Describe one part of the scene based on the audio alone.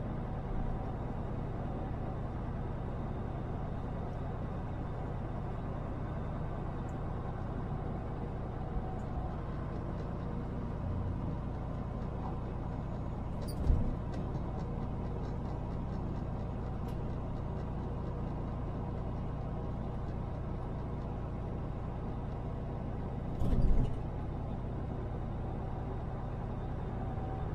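Tyres roll over the road with a constant low rumble.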